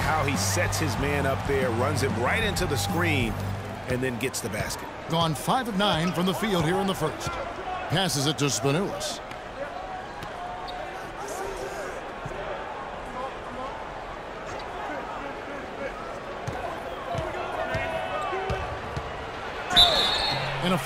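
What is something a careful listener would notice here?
A crowd cheers steadily in a large echoing arena.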